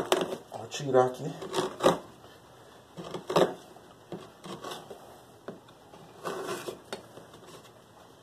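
A chisel scrapes and cuts into wood in short strokes.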